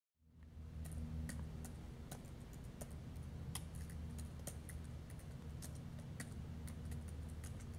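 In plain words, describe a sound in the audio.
Keys click quickly as someone types on a laptop keyboard.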